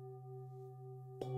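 A mallet strikes a singing bowl.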